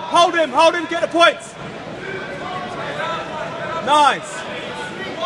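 Spectators shout loudly, with strained, high-pitched cries.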